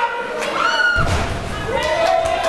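A wrestler is slammed with a heavy thud onto a canvas wrestling ring.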